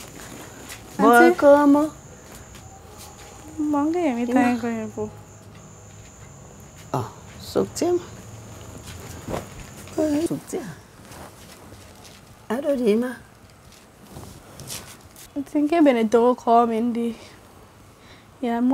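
A young woman speaks softly and pleadingly nearby.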